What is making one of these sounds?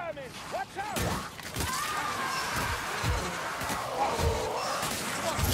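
Blades slash and thud against snarling creatures in a close fight.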